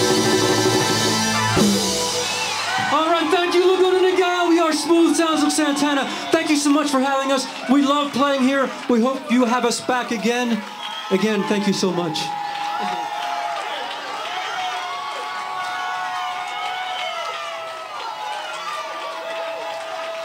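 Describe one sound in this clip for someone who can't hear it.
A live band plays loud music outdoors.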